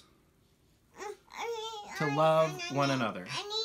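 A toddler girl babbles and talks up close.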